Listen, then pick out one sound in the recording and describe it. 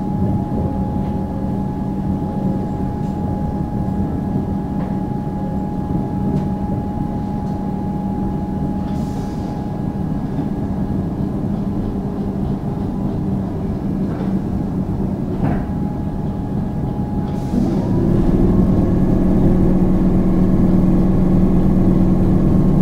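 A train's motor hums and whines, rising in pitch as it speeds up.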